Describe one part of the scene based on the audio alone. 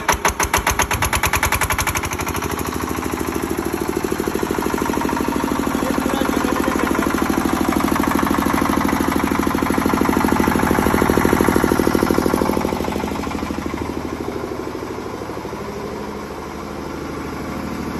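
A single-cylinder diesel generator runs with a steady thudding beat.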